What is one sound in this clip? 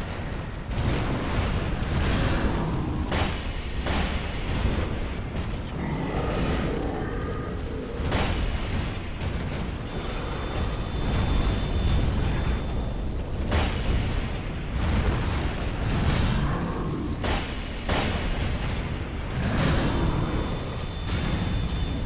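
Fire roars and crackles in bursts.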